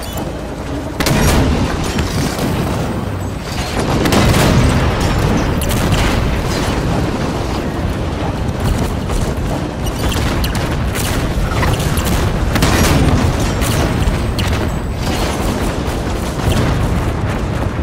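Gunfire and explosions boom again and again.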